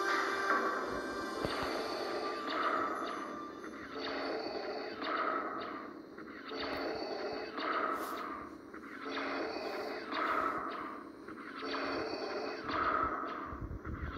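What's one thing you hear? A man sings on stage, heard through a television speaker.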